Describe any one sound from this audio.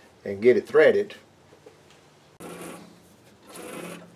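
A lathe tailstock scrapes as it slides along its metal bed.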